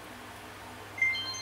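A short bright chime plays from a tablet's speaker.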